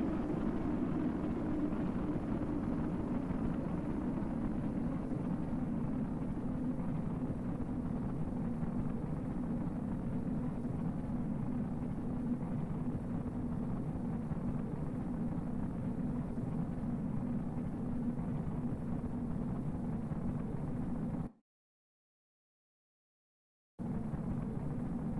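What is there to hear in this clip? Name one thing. A deep, steady roar of a spacecraft burning through the atmosphere rumbles on.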